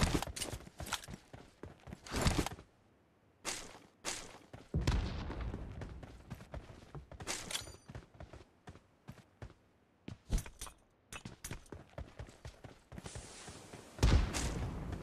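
Quick footsteps patter over the ground.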